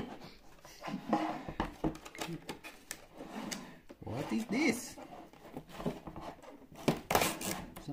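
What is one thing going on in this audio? A hard plastic object knocks and bumps against a table.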